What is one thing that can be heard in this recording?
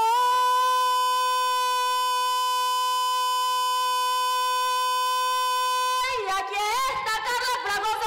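A young woman sings a long held note through a microphone, then sings on with a wavering voice.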